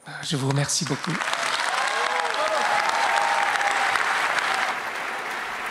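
A crowd cheers and whoops.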